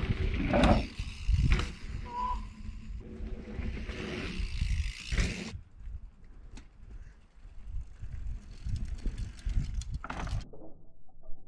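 A bicycle lands with a thump after a jump.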